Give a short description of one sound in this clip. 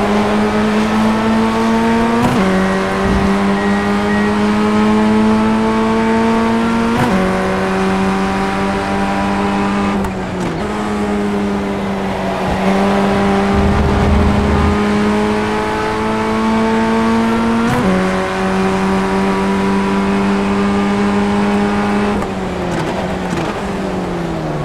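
A racing car engine roars at high revs, shifting up through the gears and dropping in pitch as it slows.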